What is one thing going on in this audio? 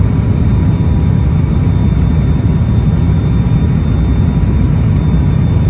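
Aircraft engines roar steadily from inside the cabin.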